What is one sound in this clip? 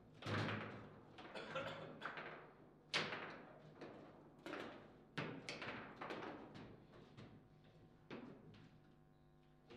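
Foosball rods rattle and thud as they spin and slide.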